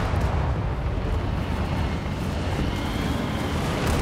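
A tank engine rumbles close by.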